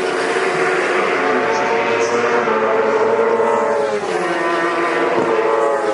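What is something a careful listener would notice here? A race car engine roars loudly, shifting gear as the car speeds closer.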